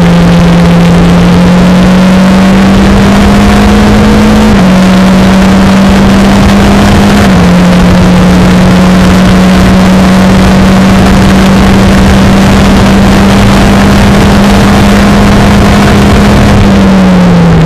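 A Formula Renault 2.0 race car engine screams at full throttle, shifting up through the gears.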